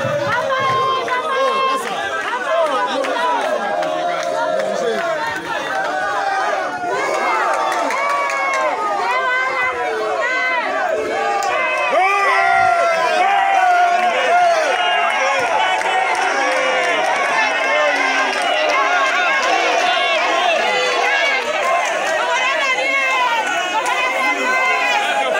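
A crowd shouts and cheers loudly outdoors, close by.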